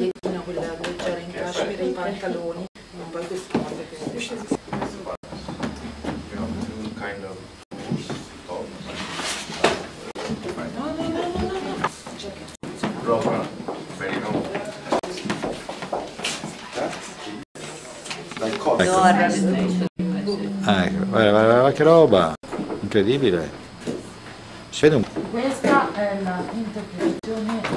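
Several women and men talk and chat close by.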